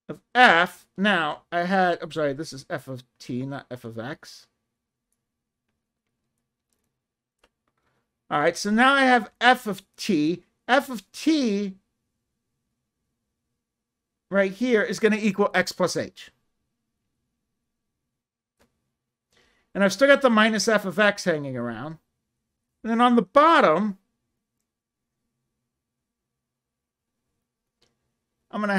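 An older man speaks calmly and clearly close to a microphone, pausing between phrases.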